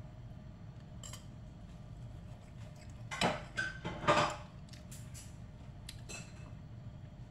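A knife and fork scrape and clink against a plate.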